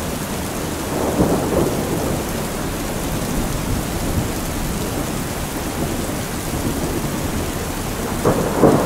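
Heavy rain pours steadily onto a metal roof.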